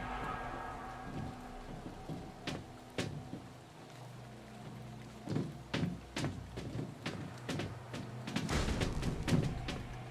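Footsteps thud slowly on a hard floor.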